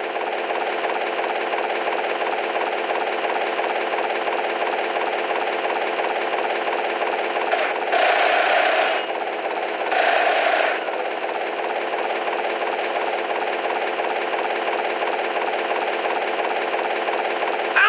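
Helicopter rotor blades chop steadily overhead.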